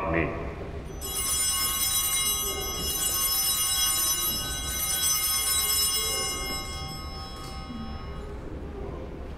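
Small bells ring in a bright, sustained jingle in an echoing hall.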